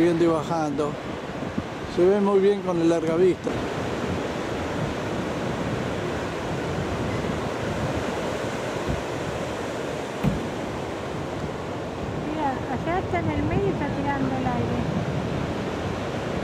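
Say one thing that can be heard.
Waves break and wash onto a shore with a steady rushing roar.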